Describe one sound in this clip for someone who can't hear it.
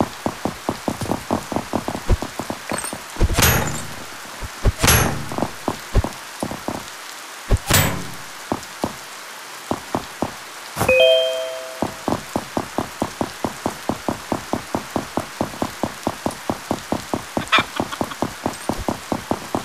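Footsteps tap quickly and steadily on hard stone.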